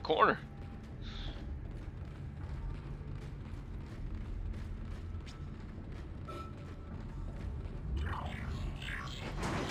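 Heavy boots clank on a metal floor.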